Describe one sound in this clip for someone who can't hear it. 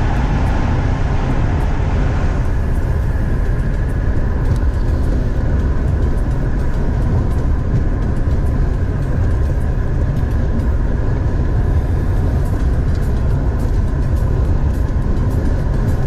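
A car drives fast with a steady low rumble of tyres on the road.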